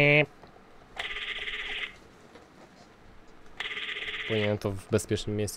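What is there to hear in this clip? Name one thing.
A phone line rings in short bursts.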